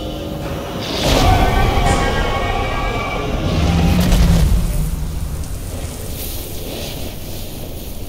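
Heavy rubble crashes and rumbles down.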